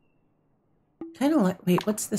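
A game menu makes a short soft chime.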